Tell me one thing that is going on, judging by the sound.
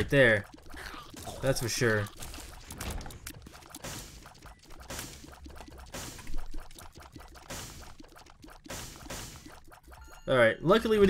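Quick small shots pop and splatter in rapid bursts.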